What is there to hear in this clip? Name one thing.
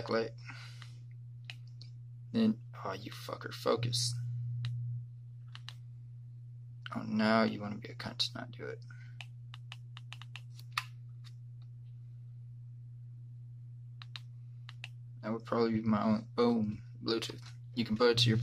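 Plastic buttons click under a thumb.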